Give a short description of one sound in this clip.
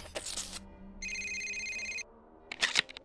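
An electronic message chime plays.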